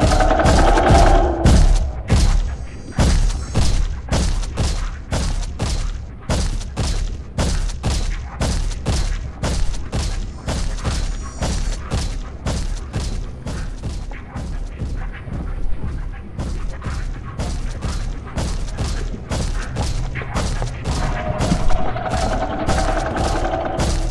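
Footsteps run quickly and steadily across a wooden floor.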